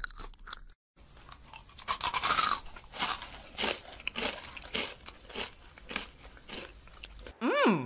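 Paper crinkles and rustles in a young man's hands.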